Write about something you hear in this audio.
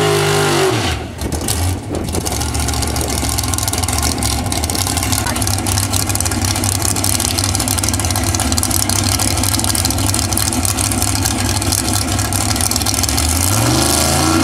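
Racing car engines rumble steadily at idle.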